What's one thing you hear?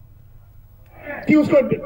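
An elderly man speaks loudly into a microphone over a loudspeaker.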